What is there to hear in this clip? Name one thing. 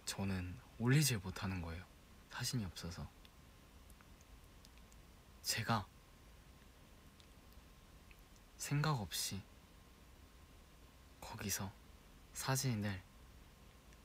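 A young man speaks casually in short bursts close to a microphone.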